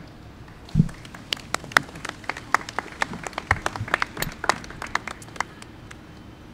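A small crowd applauds.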